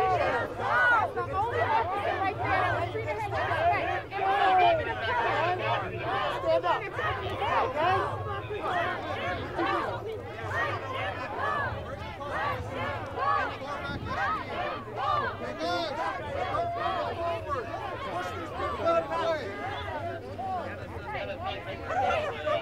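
A crowd of men and women shout and yell loudly all around, close by.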